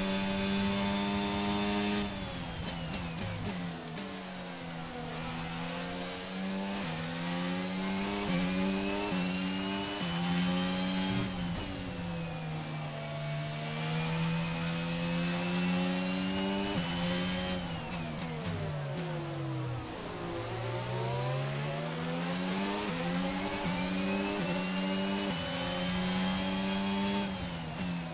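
A racing car engine screams at high revs, rising and dropping in pitch through gear changes.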